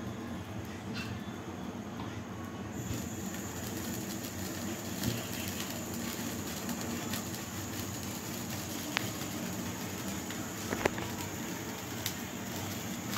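A metal spatula clinks against a pan.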